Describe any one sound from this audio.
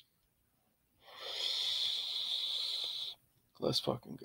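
A man exhales a long breath of smoke close by.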